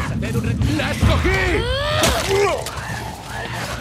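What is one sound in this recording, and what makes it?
A man shouts nearby.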